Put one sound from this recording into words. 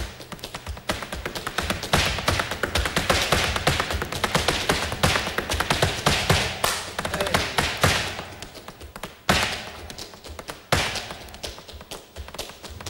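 Heels stamp rapidly and sharply on a wooden stage in a fast dance rhythm.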